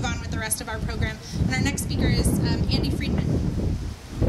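A woman speaks to a crowd outdoors.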